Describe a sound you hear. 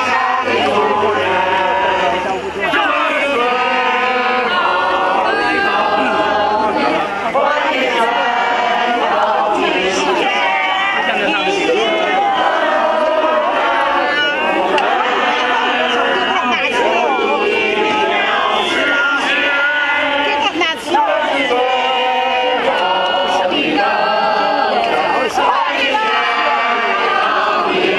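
A large crowd of men and women sings together loudly outdoors.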